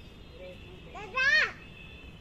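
A parrot gives a loud, harsh squawk close by.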